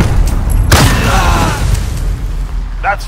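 A rifle fires a rapid burst of loud shots.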